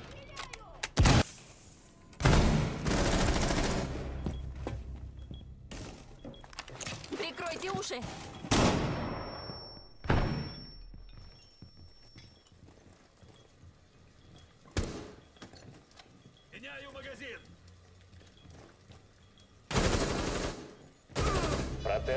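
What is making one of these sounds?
Gunfire rings out in loud, sharp bursts.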